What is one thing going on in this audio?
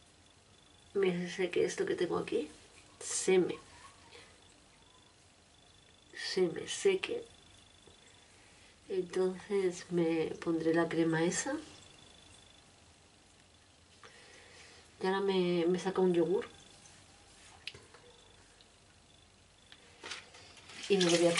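A woman talks calmly close by, in short bursts with pauses.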